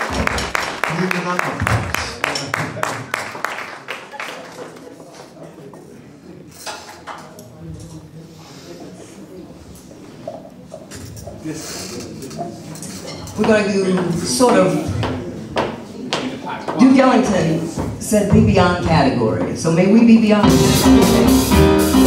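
A drummer plays a swinging beat on a drum kit with cymbals.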